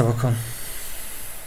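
A young man speaks quietly and briefly into a close microphone.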